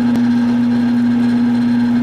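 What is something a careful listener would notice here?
A drill bit cuts into metal.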